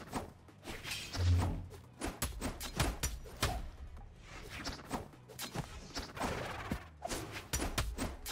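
Whooshing attack sounds sweep through the fight.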